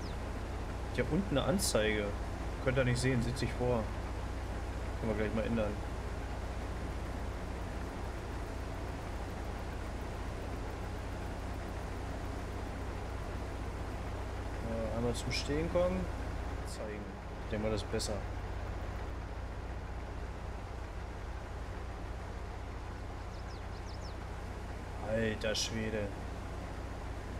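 A young man speaks casually into a headset microphone in short bursts.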